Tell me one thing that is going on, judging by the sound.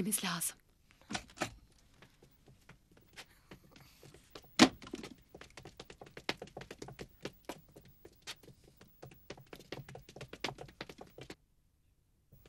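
Footsteps clatter down a stairwell.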